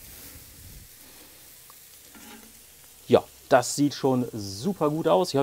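Food sizzles softly on a hot grill.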